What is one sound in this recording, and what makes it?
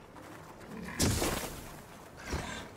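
A loud blast bursts nearby.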